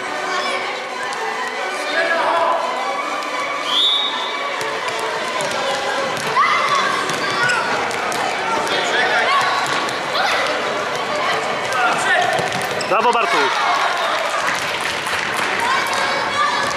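Children shout and call out in a large echoing sports hall.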